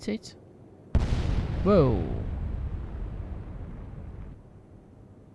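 A huge explosion booms and rumbles away.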